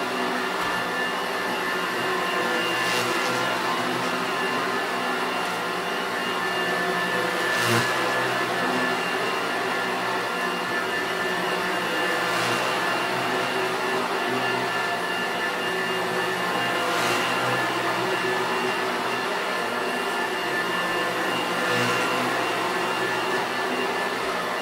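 An upright vacuum cleaner hums steadily close by as it is pushed back and forth over a carpet.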